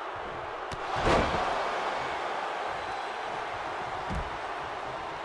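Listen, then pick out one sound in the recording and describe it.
A heavy body slams hard onto the floor with a loud thud.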